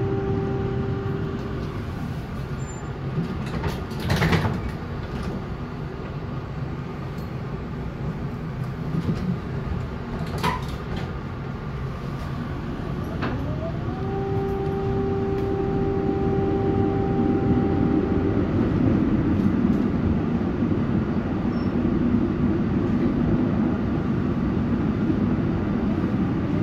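A tram rumbles and rattles along the tracks.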